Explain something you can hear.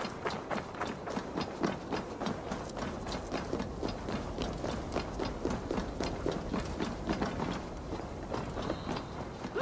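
Footsteps crunch quickly through snow and thump on wooden steps.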